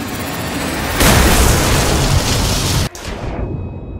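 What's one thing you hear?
Water rushes and splashes loudly.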